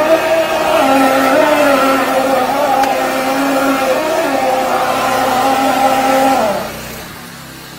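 A motor hums loudly and steadily, then shuts off.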